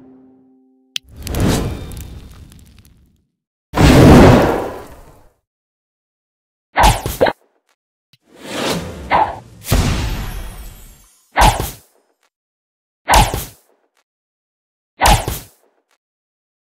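Game bubbles pop with short, bright sound effects, again and again.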